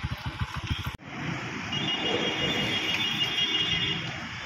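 A motorcycle rides by on a busy street.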